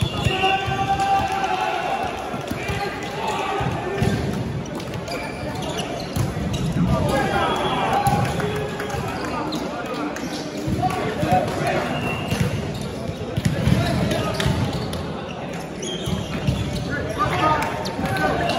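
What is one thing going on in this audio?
A volleyball is hit and thuds in a large echoing hall.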